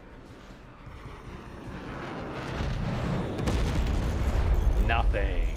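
Missiles whoosh through the air.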